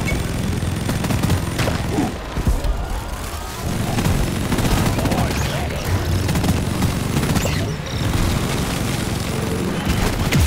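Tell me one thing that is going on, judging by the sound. Rocks crumble and clatter as a game's gun blasts them.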